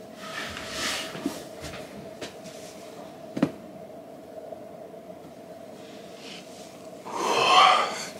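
A costume rustles as a man takes off a mask.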